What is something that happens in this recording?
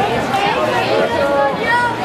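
A boy shouts nearby.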